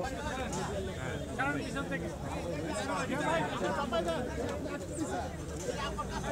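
A crowd of men murmurs and talks quietly outdoors.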